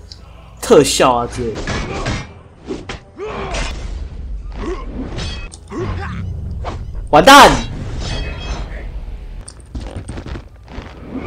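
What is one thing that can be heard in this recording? Swords clash and ring with metallic clangs.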